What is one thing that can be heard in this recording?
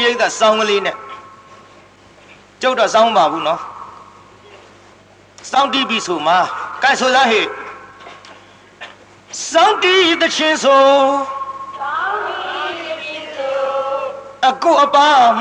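A man chants in a melodic voice, with pauses between phrases.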